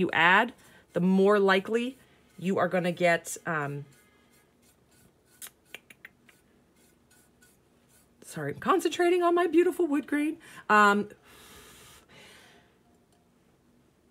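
A small brush strokes softly across a hard surface.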